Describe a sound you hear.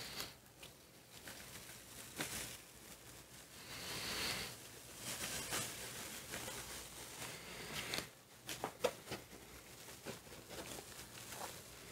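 Paper rustles and crinkles as a sheet is peeled back slowly.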